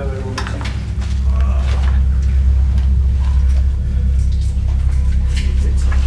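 A person crawls through a narrow tunnel, scuffing and scraping against rock.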